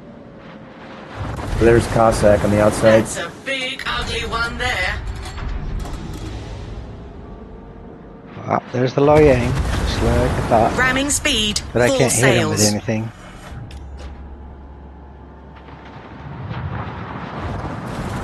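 Heavy naval guns boom in salvos.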